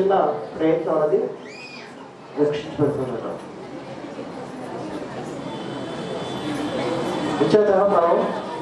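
A man speaks calmly through a microphone and loudspeakers.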